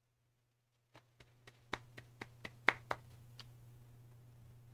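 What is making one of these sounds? A man rubs his hands together.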